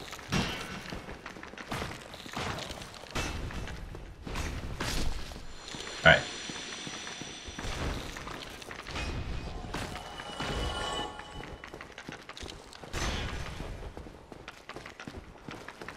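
Sword blows clash and thud against a large creature.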